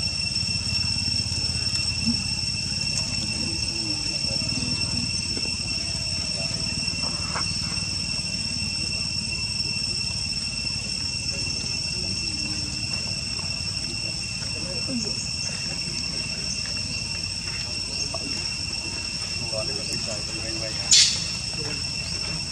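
Small feet patter on loose gravel.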